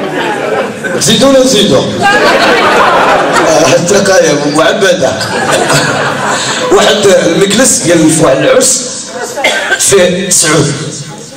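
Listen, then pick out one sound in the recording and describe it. A man sings loudly through a microphone.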